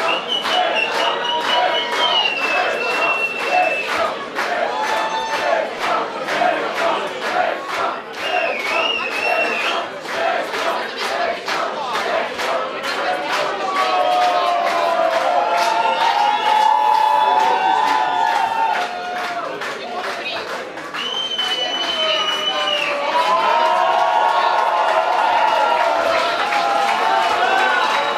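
A crowd cheers and shouts over the music.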